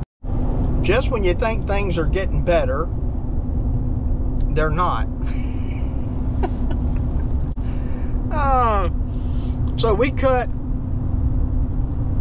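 A vehicle's engine and road noise rumble steadily inside a cab.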